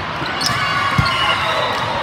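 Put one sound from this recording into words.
A volleyball is struck with a sharp smack.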